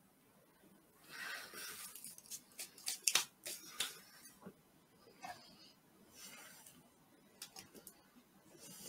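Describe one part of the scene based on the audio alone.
A plastic wrapper crinkles and rustles in a man's hands.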